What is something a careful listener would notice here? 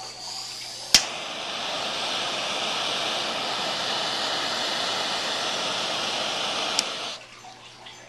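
A handheld tool hisses steadily, then stops abruptly.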